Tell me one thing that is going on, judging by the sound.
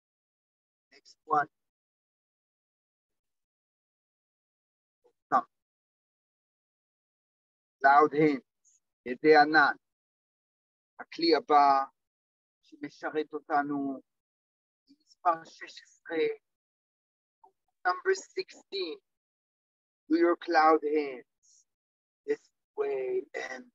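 A man speaks calmly into a clip-on microphone, pausing between phrases.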